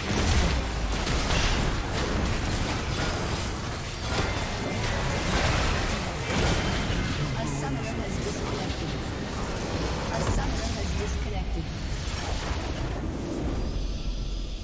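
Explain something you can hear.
Game spell blasts and clashes crackle and boom in a hectic battle.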